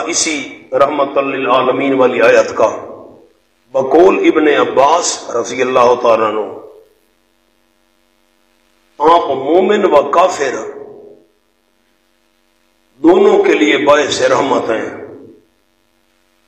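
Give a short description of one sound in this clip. A man speaks with emphasis through a microphone, in bursts with pauses.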